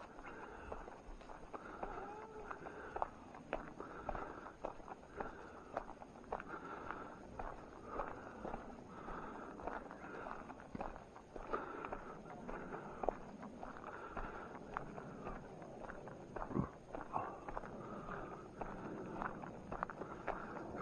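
Footsteps crunch on leaves and gravel along a path.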